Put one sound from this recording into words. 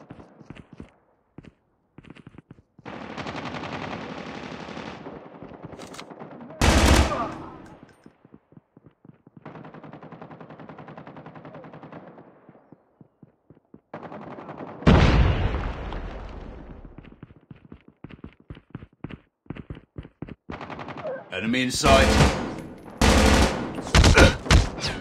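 Footsteps patter quickly over hard ground.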